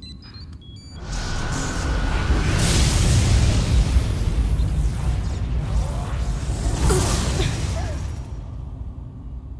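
Electricity crackles and roars in a loud surge, then fades.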